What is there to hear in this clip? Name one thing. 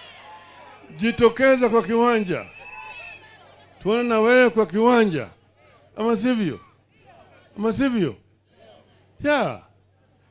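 An elderly man speaks forcefully through a microphone and loudspeakers, in short bursts with pauses.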